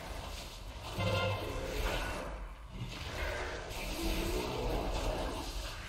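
Electric spells crackle and zap.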